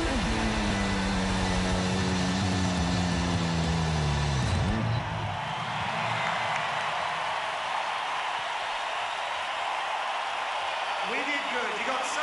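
A large crowd cheers and claps in a huge open-air arena.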